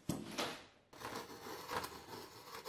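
A utility knife blade scratches across a wooden board.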